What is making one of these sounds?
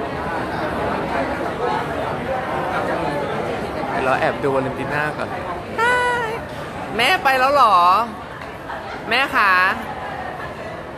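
A crowd of people chatters loudly indoors.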